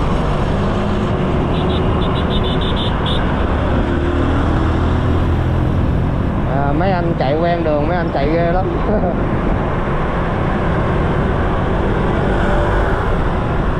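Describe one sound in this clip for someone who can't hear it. A scooter engine hums steadily close by.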